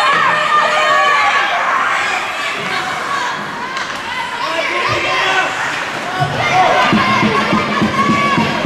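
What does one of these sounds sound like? A crowd of spectators shouts and cheers in a large echoing arena.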